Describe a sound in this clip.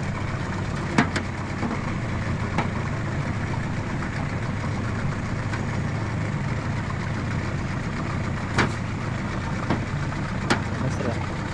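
Knocks sound now and then against a metal boat hull.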